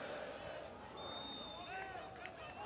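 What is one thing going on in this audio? A referee blows a short whistle.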